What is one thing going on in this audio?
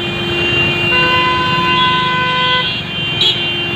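A vehicle horn blares for a couple of seconds.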